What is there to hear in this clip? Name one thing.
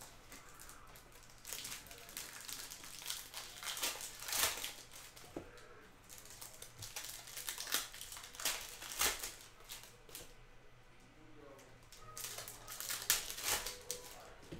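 A foil wrapper crinkles and tears as it is opened.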